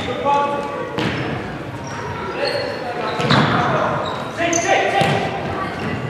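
A ball thuds as players kick it, echoing in a large hall.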